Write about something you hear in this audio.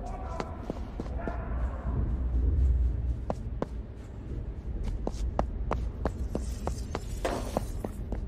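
Footsteps clack on a hard metal floor at a steady walking pace.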